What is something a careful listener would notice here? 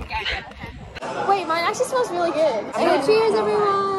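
Young women talk cheerfully up close.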